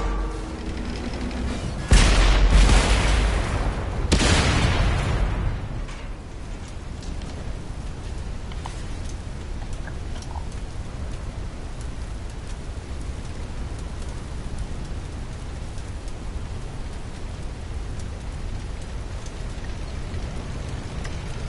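A low engine rumble drones steadily.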